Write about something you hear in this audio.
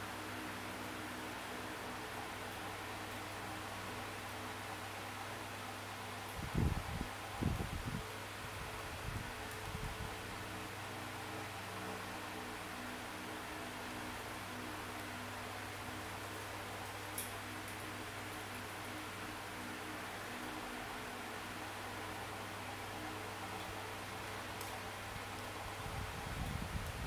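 A finger taps and swipes on a touchscreen.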